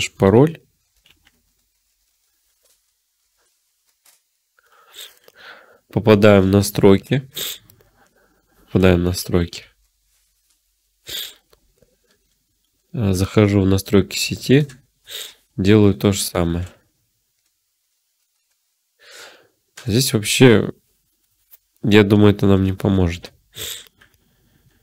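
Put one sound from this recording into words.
A young man talks calmly and close into a microphone, in short bursts with pauses.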